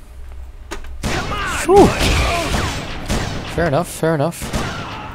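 Gunfire blasts in rapid bursts.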